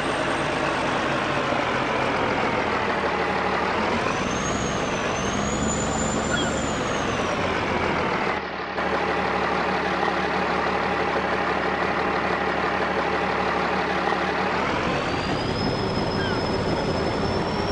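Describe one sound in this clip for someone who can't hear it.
A diesel truck engine rumbles loudly and revs up and down.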